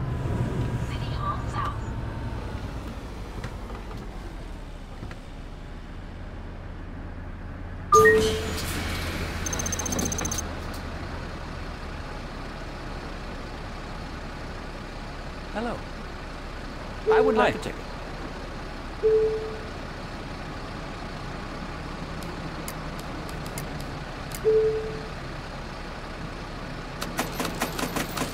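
A bus engine idles with a low, steady hum.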